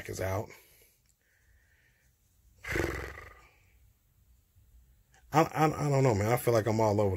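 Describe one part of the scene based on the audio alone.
A young man speaks close to a phone microphone, in short bursts between pauses.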